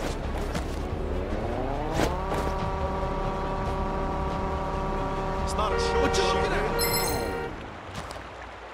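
A small electric motor whirs, rising in pitch, holding steady, then winding down.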